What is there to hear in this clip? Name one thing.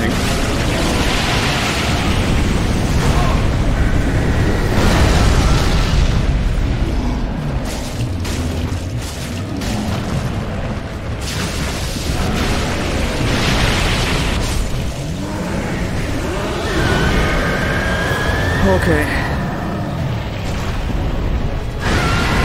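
A monster roars and rumbles deeply.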